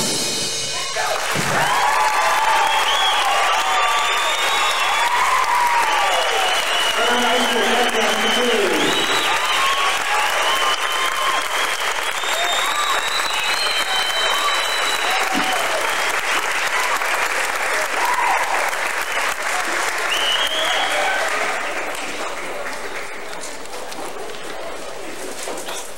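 An audience claps loudly in a large echoing hall.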